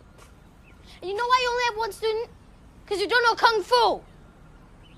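A boy shouts sharply with effort, close by.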